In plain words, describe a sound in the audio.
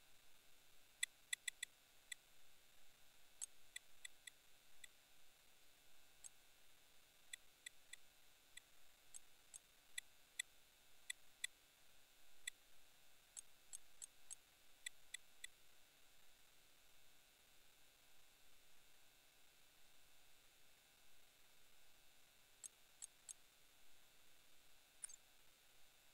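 Short, sharp menu clicks tick in quick bursts as settings are changed.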